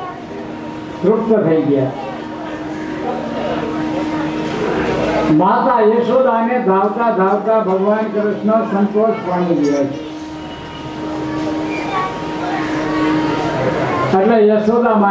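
An elderly man sings a chant into a microphone, heard through a loudspeaker.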